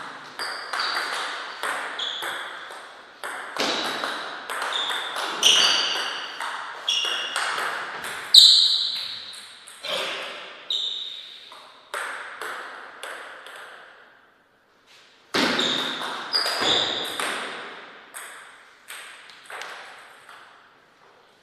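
A table tennis ball clicks back and forth off paddles and the table in a quick rally, echoing in a large hall.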